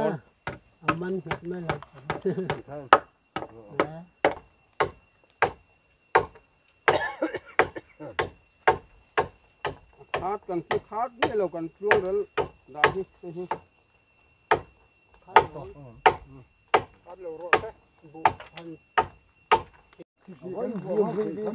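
A man hammers on bamboo poles in steady knocks.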